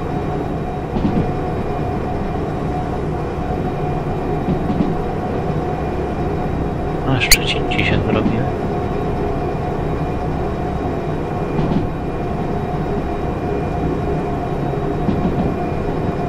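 Train wheels clack over rail joints now and then.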